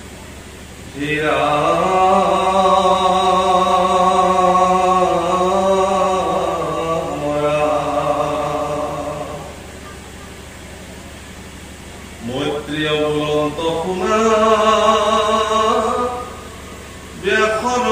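A young man chants in a long, sustained melodic voice through a microphone and loudspeaker.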